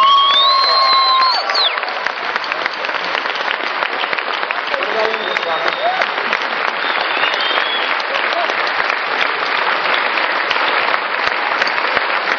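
A large audience applauds loudly and steadily.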